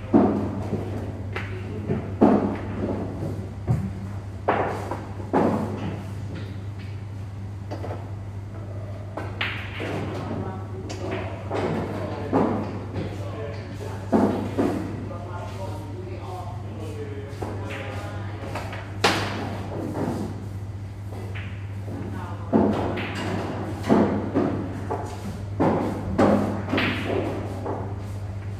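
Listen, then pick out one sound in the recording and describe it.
Billiard balls click sharply against each other as a cue strikes them.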